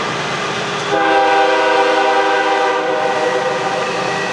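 A locomotive horn blows in the distance.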